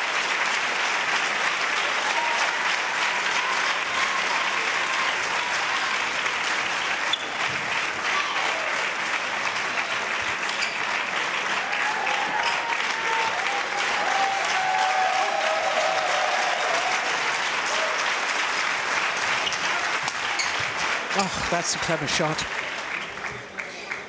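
A large indoor crowd murmurs and chatters steadily.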